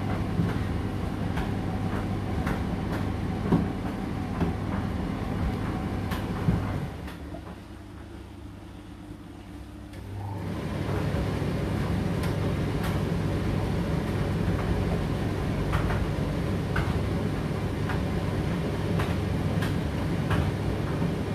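A condenser tumble dryer hums as its drum turns.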